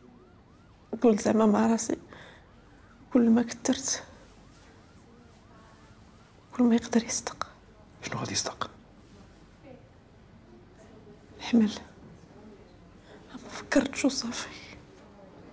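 A young woman speaks weakly and slowly, close by.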